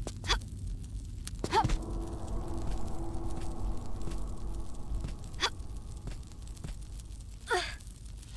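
Hands grab and scrape on a stone ledge.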